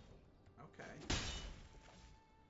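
A heavy impact thuds as a creature strikes.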